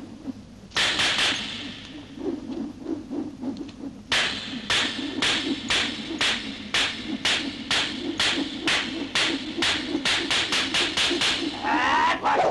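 Nunchaku whip through the air and clack rapidly.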